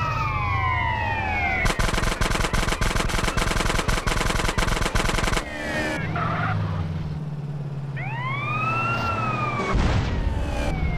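Police sirens wail and rise and fall.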